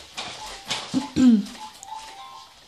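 A baby squeals once.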